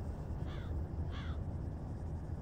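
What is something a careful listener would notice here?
A bird calls overhead.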